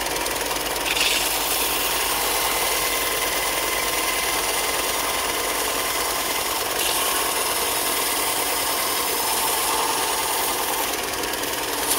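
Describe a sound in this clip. A piece of wood rasps against a belt sander.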